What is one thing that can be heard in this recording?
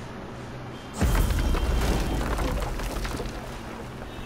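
A deep magical whoosh swells as a traveller arrives, then slowly fades.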